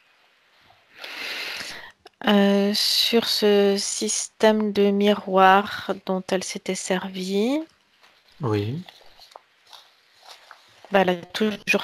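A middle-aged man chants long, drawn-out tones through a microphone, heard over an online call.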